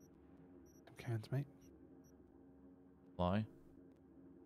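Menu selections beep softly.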